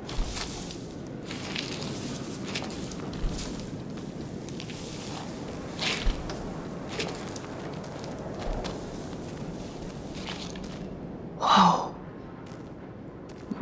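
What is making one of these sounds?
Dry straw rustles and crunches under shifting feet.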